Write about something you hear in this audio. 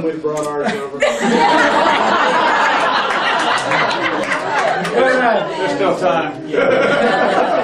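A crowd of people laughs and cheers in a room.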